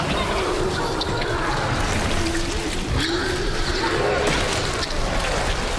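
A creature growls and snarls close by.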